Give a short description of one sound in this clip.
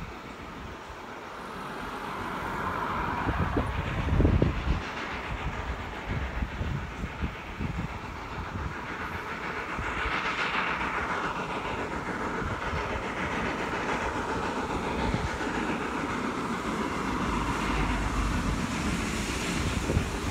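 A steam locomotive chuffs hard as it works up a steep grade, distant and drawing nearer.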